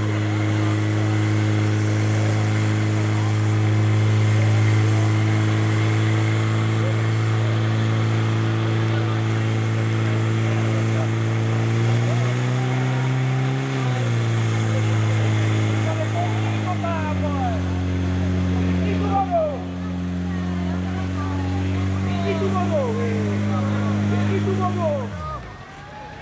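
A pump engine drones loudly and steadily, changes pitch, then cuts out.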